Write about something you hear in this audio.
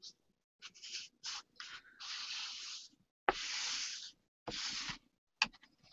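A hand rubs and smooths down paper.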